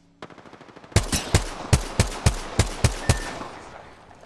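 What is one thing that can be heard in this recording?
A rifle fires a quick series of loud shots.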